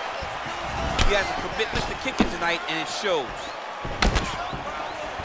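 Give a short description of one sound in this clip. A kick lands on a body with a dull thud.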